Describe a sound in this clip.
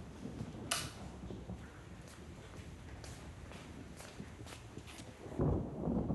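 A man's footsteps thud softly on wooden stairs and floorboards.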